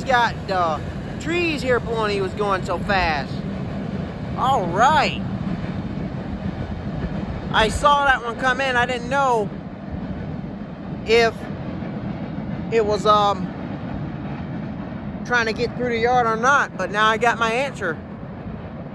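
Train wheels squeal shrilly against the rails in bursts.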